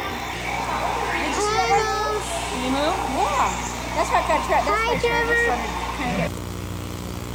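A young child calls out excitedly.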